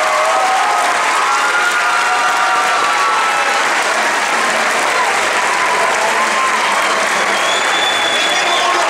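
An audience applauds loudly in a large hall.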